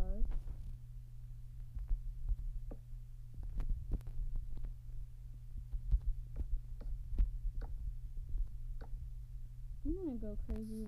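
Keyboard taps click softly and quickly.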